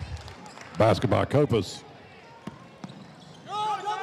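A basketball thumps on a wooden floor.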